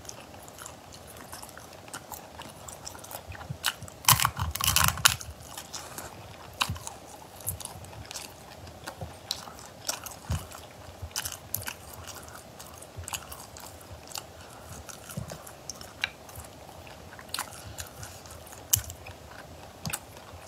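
A young woman cracks snail shells with her fingers close to a microphone.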